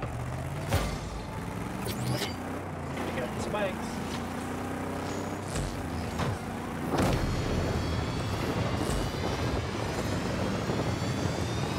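A video game car engine hums and roars steadily.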